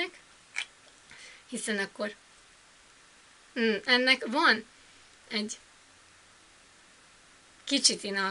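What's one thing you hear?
A young woman talks close by in short, animated bursts with pauses.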